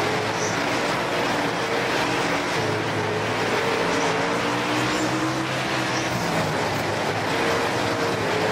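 Several other race car engines drone nearby.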